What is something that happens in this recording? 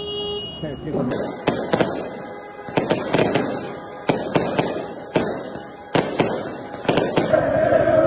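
Aerial fireworks crack and bang overhead outdoors.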